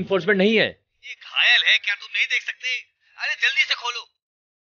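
An elderly man speaks into a handheld radio.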